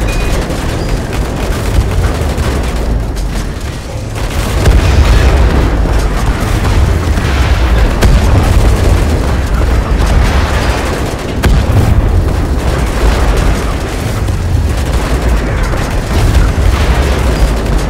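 Explosions boom and rumble over and over.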